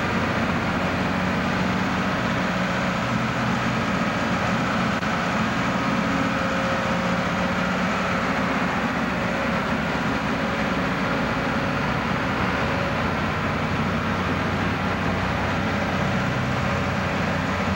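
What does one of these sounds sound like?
A slinger conveyor machine hums and whirs as it runs.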